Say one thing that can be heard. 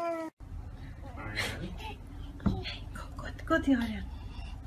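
A young child whines and cries out close by.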